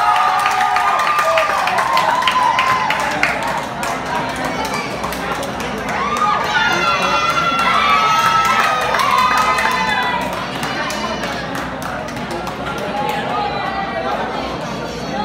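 A crowd chatters and calls out in a large hall.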